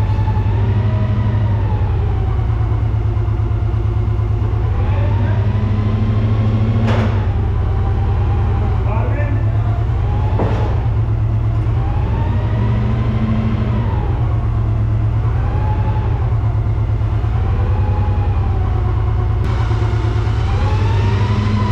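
A large diesel engine rumbles loudly close by, its pitch slowly rising and falling.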